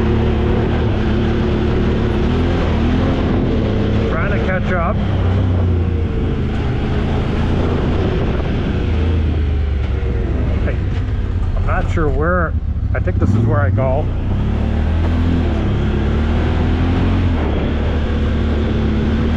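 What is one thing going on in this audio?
An off-road vehicle's engine rumbles steadily, rising and falling with the throttle.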